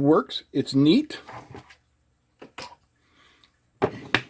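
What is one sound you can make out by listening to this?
A small object is set down on a wooden surface with a light knock.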